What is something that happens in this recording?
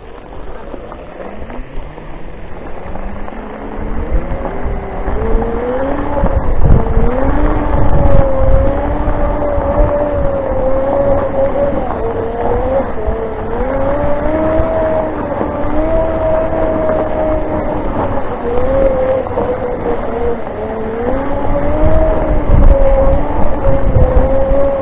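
An electric scooter's motor whines, rising and falling in pitch with its speed.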